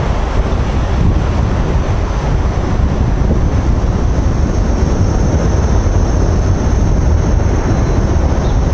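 Inline skate wheels roll steadily over pavement.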